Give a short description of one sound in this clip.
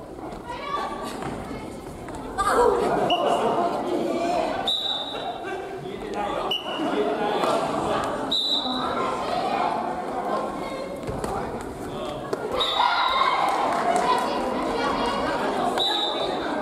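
Shuttlecocks are hit with rackets in a large echoing hall.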